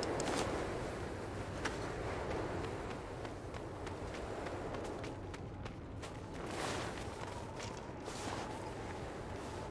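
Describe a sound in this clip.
A strong wind blows steadily.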